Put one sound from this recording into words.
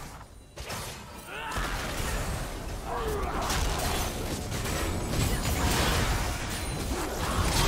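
Magic spells crackle and whoosh during a fast fight.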